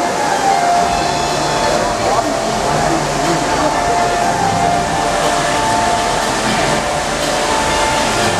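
A crowd of people chatters in a busy, echoing indoor space.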